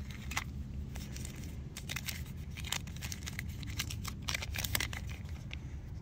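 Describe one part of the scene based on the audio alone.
Paper crinkles and rustles as it is unfolded by hand.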